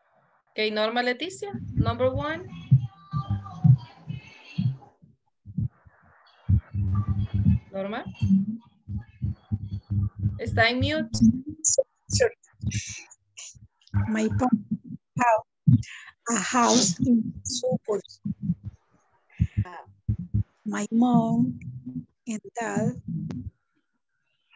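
A woman speaks calmly through an online call.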